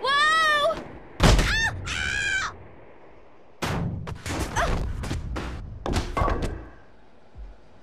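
A bowling ball rolls heavily along a wooden ramp.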